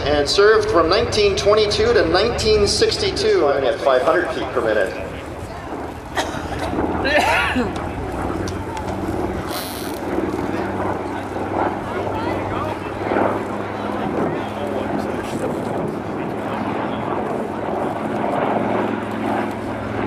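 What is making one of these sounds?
Propeller plane engines drone steadily overhead.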